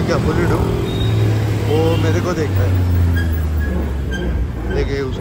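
A bus engine rumbles past close by.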